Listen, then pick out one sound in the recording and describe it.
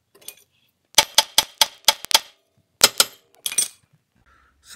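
A metal wrench clanks sharply against steel car parts several times.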